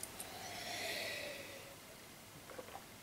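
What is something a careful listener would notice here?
A middle-aged man slurps from a mug.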